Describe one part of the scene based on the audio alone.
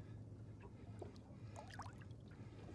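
A fish splashes at the water's surface.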